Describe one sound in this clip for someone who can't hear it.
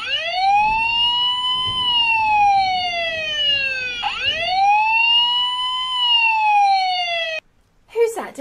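A toy siren wails, rising and falling in pitch.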